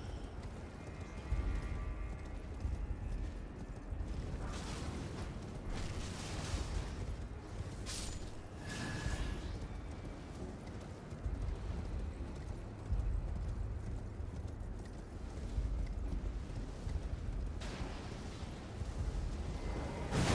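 A horse gallops with heavy hoofbeats on stone.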